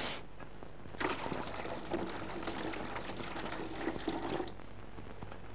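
Water pours and splashes into a basin.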